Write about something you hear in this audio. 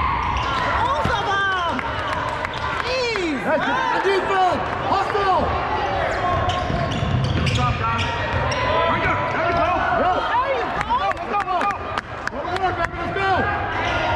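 Sneakers squeak sharply on a hard gym floor, echoing in a large hall.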